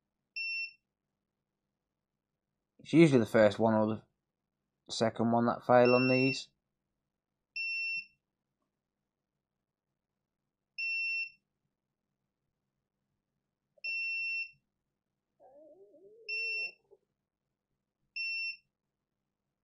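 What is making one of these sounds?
A multimeter gives short, high beeps now and then.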